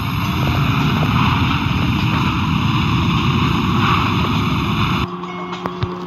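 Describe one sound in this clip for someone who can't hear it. A car engine roars steadily at speed.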